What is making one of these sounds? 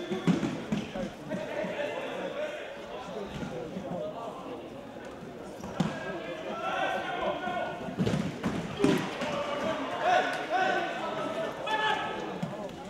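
A ball thumps on a hard floor and is kicked.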